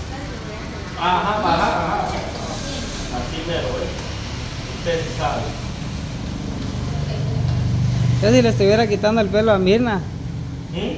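Women talk casually nearby.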